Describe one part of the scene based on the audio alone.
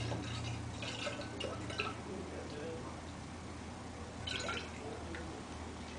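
Liquid glugs as it pours from a large bottle into a flask.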